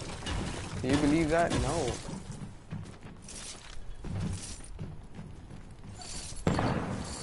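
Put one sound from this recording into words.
Footsteps thud quickly on a stone floor.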